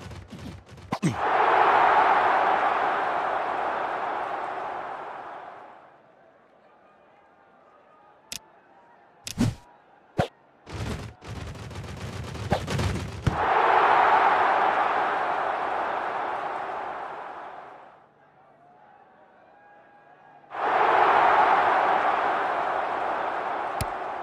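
A stadium crowd roars and cheers, then slowly fades.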